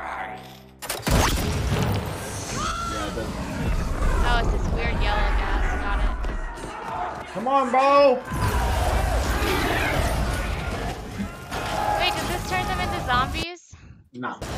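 Loud battle noise rumbles with deep booms.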